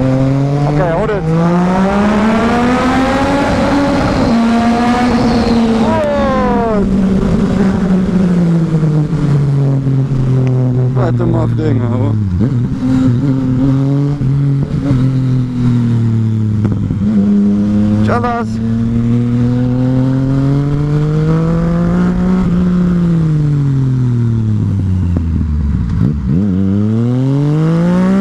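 A motorcycle engine revs up and down loudly as the rider shifts gears.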